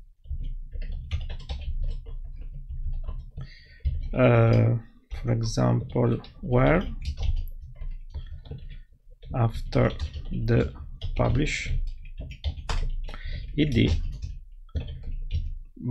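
A man speaks calmly and close into a microphone.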